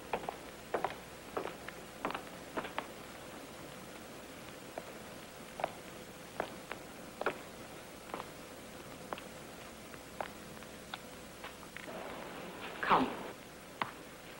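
High heels click slowly across a hard floor.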